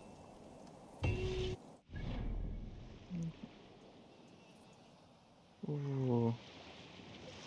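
Soft electronic chimes sound.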